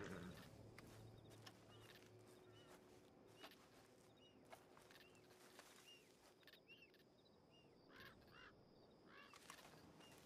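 Footsteps crunch and rustle through tall grass.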